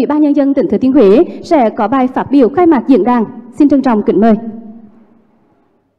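A young woman speaks calmly into a microphone through loudspeakers.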